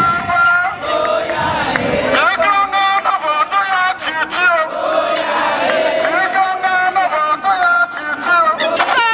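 A crowd of men and women sings and chants loudly outdoors.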